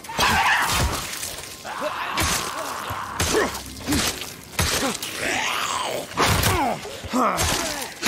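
Heavy blows thud again and again in a close fight.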